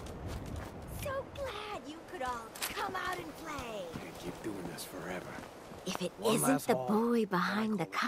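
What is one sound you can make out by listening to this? A young woman speaks boldly and teasingly, close by.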